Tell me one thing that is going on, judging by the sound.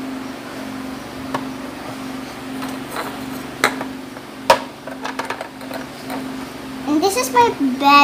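Plastic toys knock and clatter against a toy house.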